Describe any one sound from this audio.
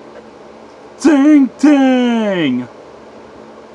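A man shouts loudly in a strained, theatrical voice close by.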